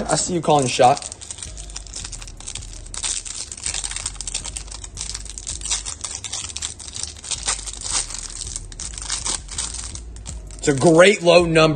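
Plastic wrapping crinkles and rustles up close.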